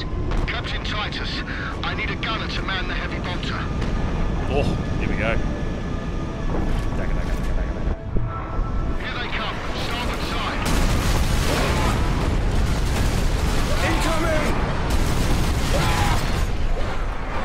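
Loud explosions boom and crackle.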